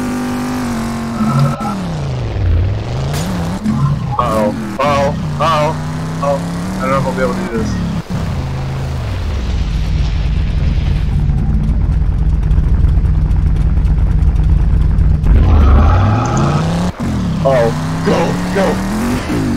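Tyres skid and crunch over rough dirt.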